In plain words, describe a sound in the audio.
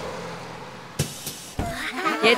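Bus doors hiss and clunk open.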